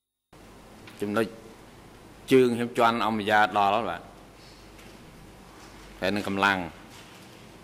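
A man speaks calmly into a microphone, in short bursts with pauses.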